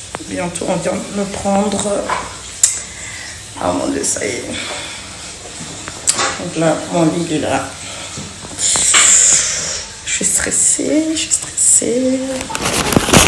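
A young woman talks casually, close to a phone's microphone.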